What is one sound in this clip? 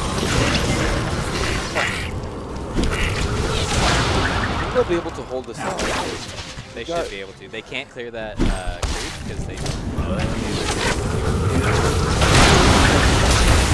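Magical blasts and clashing hits burst during a fantasy battle.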